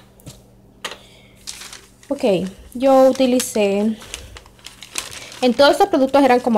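Paper crinkles and rustles as a receipt is handled.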